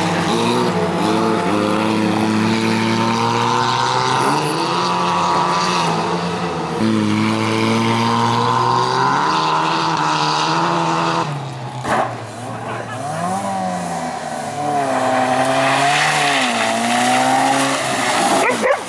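Tyres skid and scrape across loose gravel.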